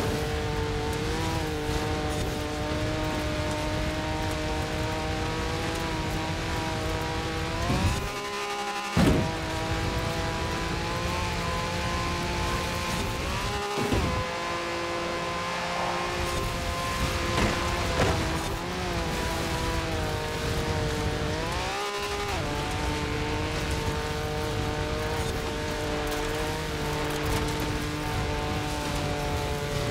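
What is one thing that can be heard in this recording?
An engine roars steadily at high revs, shifting gears now and then.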